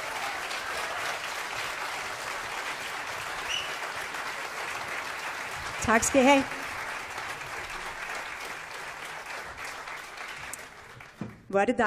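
An audience applauds in a large hall.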